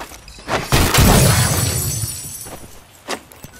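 A loud explosion bursts and crackles.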